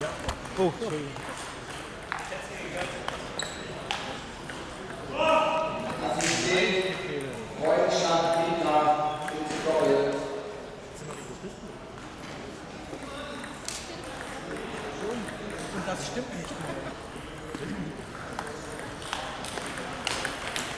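A table tennis ball clicks against paddles and the table.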